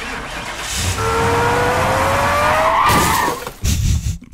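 A small robot chirps and whirs with a rising electronic tone.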